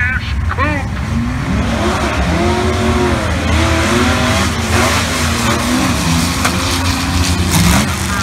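A race car engine revs up and down in sharp bursts.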